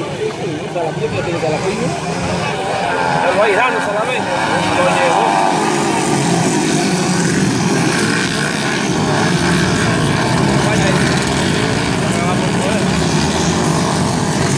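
Dirt bike engines rev and whine loudly as the bikes race past.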